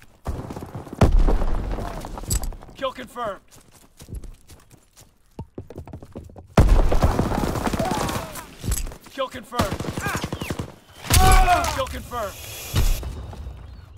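Loud blasts boom.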